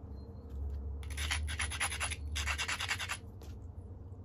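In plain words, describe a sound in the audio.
A hard tool scrapes along the edge of a stone in quick, rasping strokes.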